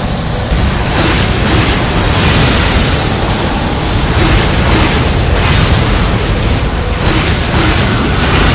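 A blade swooshes through the air in quick swings.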